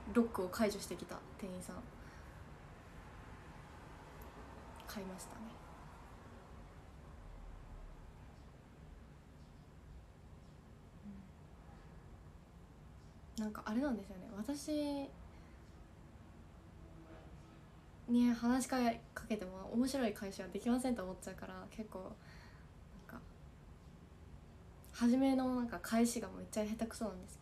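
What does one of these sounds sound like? A young woman speaks softly and cheerfully close by, in short bursts.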